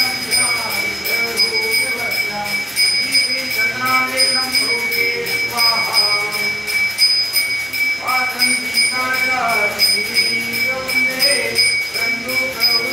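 Men chant a prayer together, close by.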